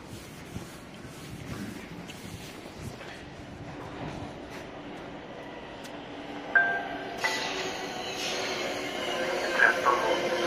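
A train rumbles into an echoing underground station, growing louder as it nears.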